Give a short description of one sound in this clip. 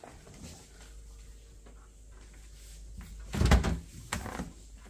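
A refrigerator door opens with a soft thud.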